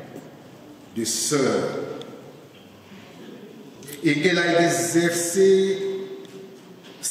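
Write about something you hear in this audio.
A man speaks with animation into a microphone, in a slightly echoing room.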